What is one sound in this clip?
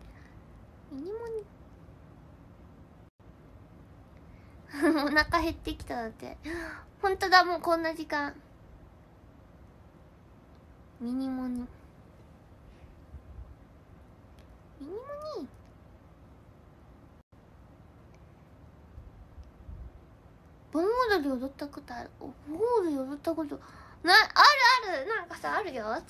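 A young woman speaks close to a microphone, chatting with animation.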